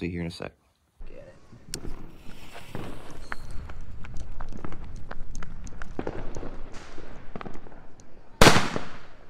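Fireworks crackle and pop rapidly outdoors nearby.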